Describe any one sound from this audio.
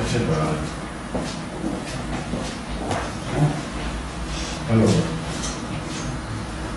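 A man speaks nearby in a slightly echoing room.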